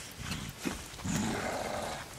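A man grunts as he falls to the ground.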